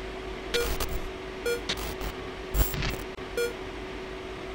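Short electronic beeps sound.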